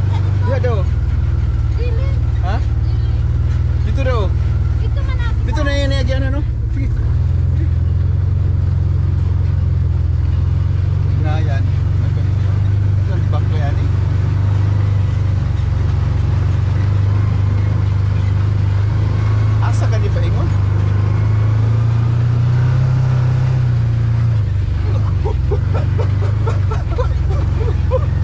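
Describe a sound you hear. An off-road vehicle's engine drones steadily up close.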